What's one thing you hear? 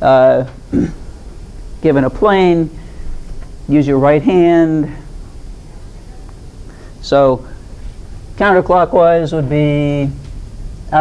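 An elderly woman speaks with animation, lecturing in a room with slight echo.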